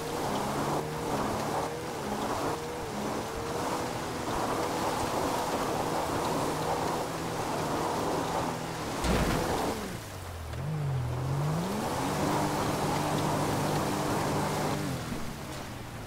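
A car engine revs hard as the car climbs over rough ground.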